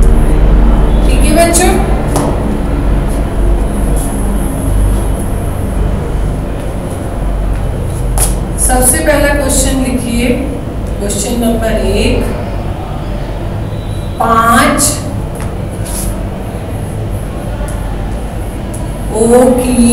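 A woman speaks calmly nearby, explaining.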